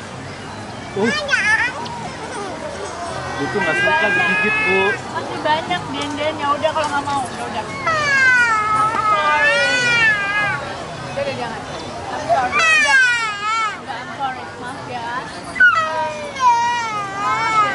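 A small boy cries and wails loudly nearby.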